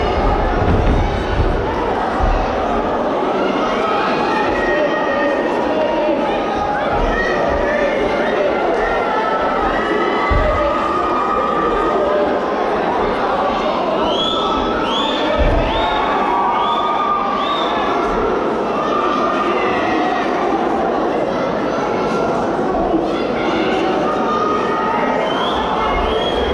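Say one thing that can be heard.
A large crowd cheers and shouts throughout in a big echoing hall.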